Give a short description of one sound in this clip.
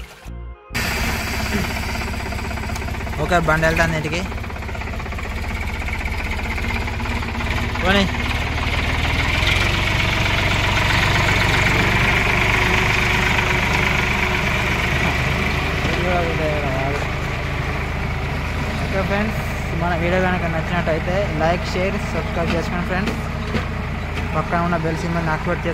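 Water splashes and churns under tractor wheels.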